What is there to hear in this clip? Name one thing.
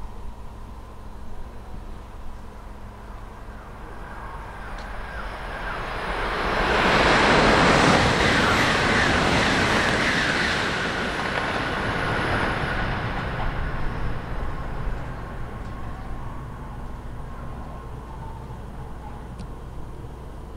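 A high-speed bullet train approaches and rushes past a platform with a roar, then fades into the distance.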